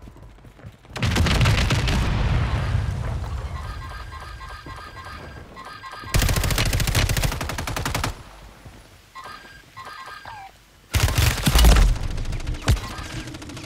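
Gunfire rattles in loud rapid bursts close by.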